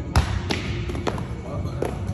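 A heavy ball thuds against a padded shield.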